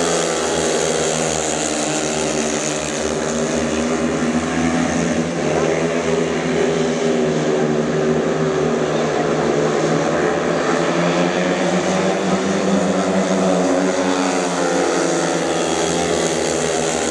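Motorcycle engines roar loudly, rising and falling in pitch.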